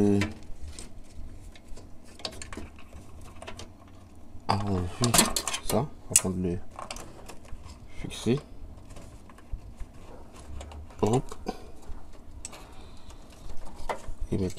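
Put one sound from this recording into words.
Cables and plastic parts rustle and click as a hand handles them.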